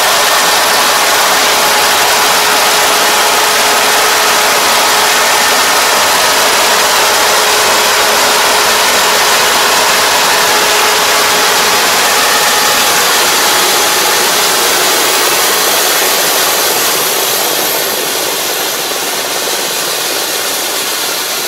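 A combine harvester engine roars steadily close by, then fades as it moves away.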